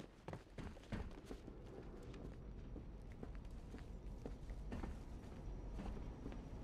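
Heavy footsteps thud slowly on a metal floor.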